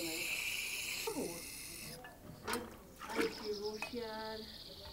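Water splashes as a container is dipped and poured into a shallow pool.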